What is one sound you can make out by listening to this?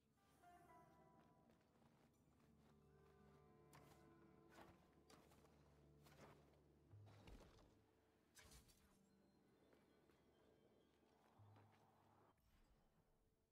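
Quick footsteps and sharp landing thuds sound on stone.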